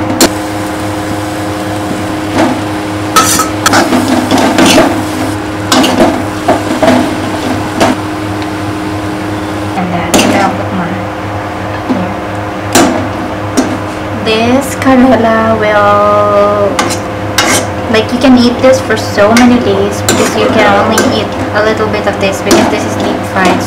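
A metal spoon scrapes and clinks against a metal pan.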